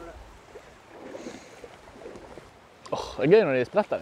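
Water splashes around wading legs.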